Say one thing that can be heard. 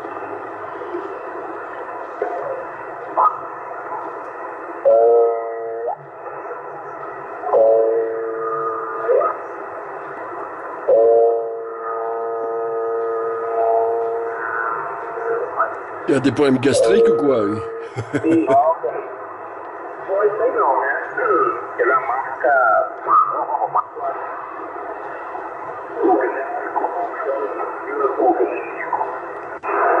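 Static hisses steadily from a radio receiver.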